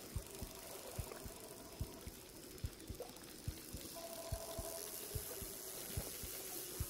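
A hooked fish splashes and thrashes in the water.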